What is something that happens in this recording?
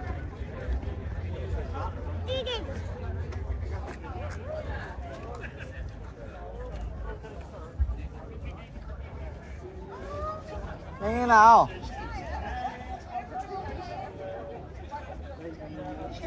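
A crowd of people chatters in the open air.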